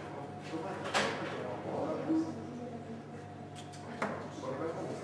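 Darts thud sharply into a dartboard.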